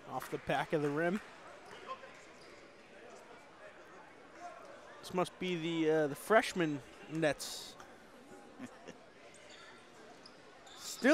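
A small crowd murmurs in the stands.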